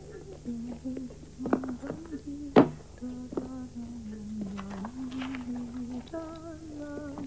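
Papers rustle and shuffle close by.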